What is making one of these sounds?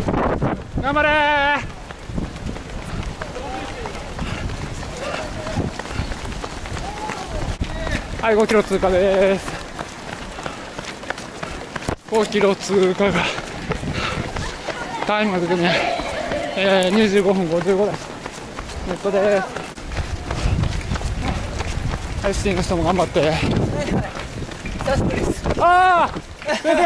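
A crowd of spectators cheers and shouts along the road.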